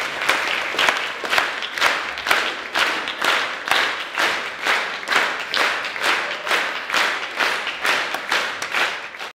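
An audience claps in a steady rhythm, in unison.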